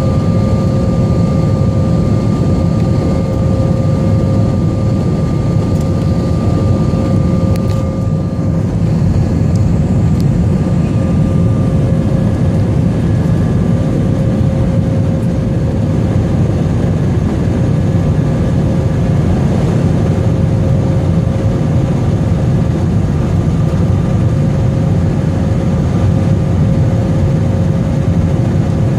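A jet engine roars steadily, heard from inside the cabin, with a constant low whine.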